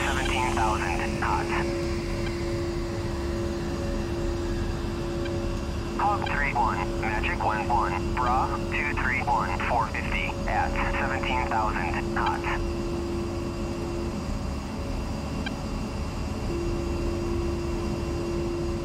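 A jet engine drones steadily in the background.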